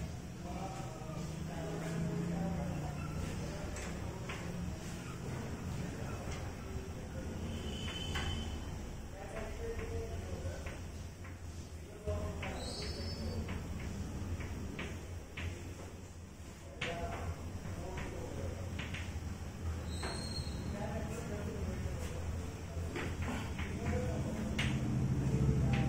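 A man lectures calmly and steadily, close by.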